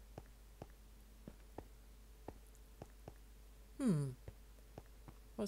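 Footsteps tap steadily on hard blocks.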